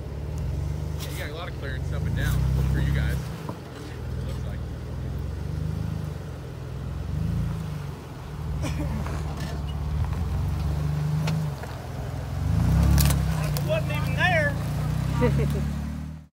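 A jeep engine rumbles low as the vehicle crawls slowly over rocks.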